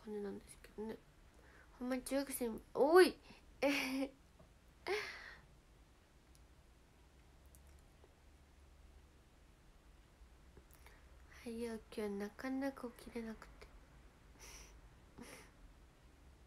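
A young woman talks softly and playfully, close to a microphone.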